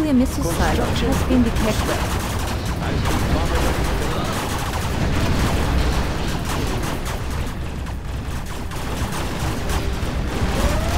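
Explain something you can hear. Tank cannons fire in rapid bursts.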